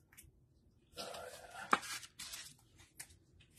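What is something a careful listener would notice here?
A plastic card sleeve crinkles softly as a card slides into it.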